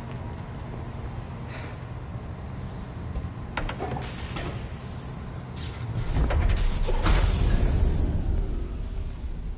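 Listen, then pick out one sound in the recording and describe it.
Steam hisses loudly nearby.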